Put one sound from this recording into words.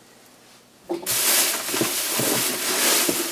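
Plastic wrapping rustles and crinkles under hands.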